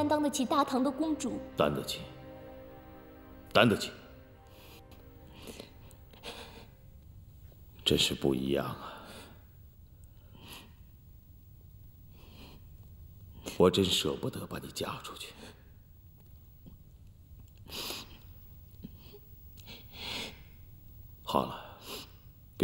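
A young woman speaks tearfully and close by.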